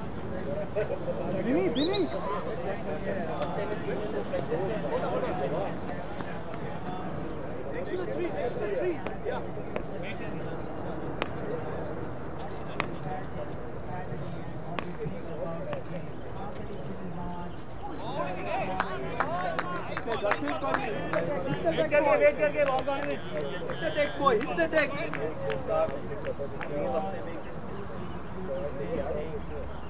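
Men talk and cheer close by outdoors.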